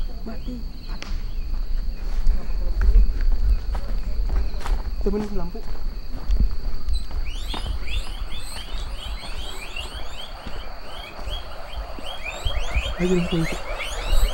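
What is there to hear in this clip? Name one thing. Footsteps crunch over the ground outdoors.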